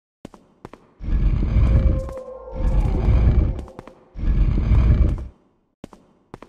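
A heavy stone block scrapes and grinds as it is pushed.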